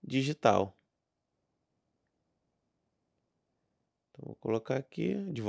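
A man speaks calmly and close into a microphone, with short pauses.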